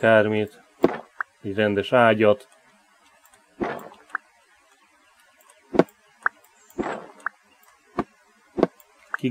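Footsteps tread softly on the ground.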